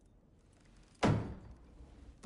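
A wooden cup knocks down onto a table.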